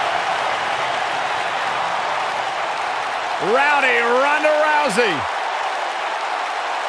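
A large crowd cheers steadily in a big echoing arena.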